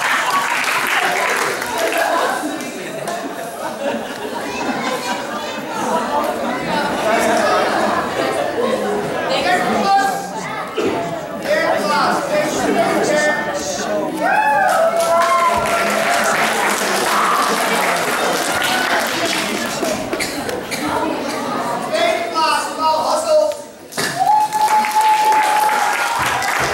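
A crowd of children and adults chatters in a large echoing hall.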